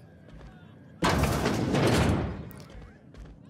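A heavy sliding door whooshes open.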